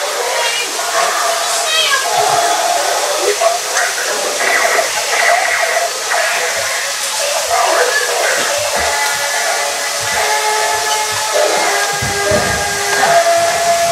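Small robots play tinny electronic music and beeps.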